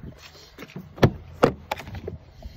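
A car door clunks open.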